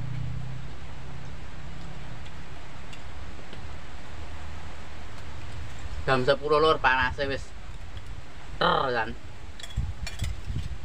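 Spoons clink on plates.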